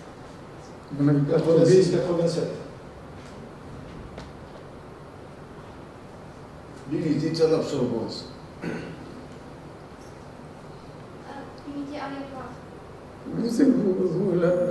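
A woman speaks calmly through a microphone in an echoing hall, in short bursts with pauses.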